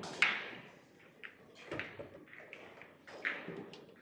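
A pool cue strikes the cue ball.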